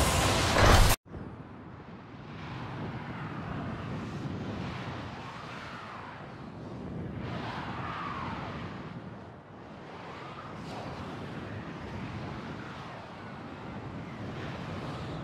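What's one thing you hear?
A large flying craft's engines rumble steadily.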